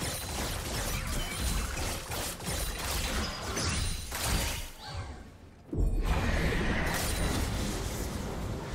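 Game spell effects crackle and burst in a busy fight.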